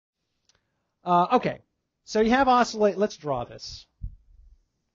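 A man lectures with animation.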